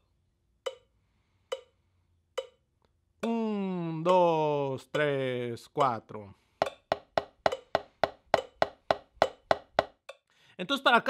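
A drumstick taps a practice pad in a steady, even rhythm.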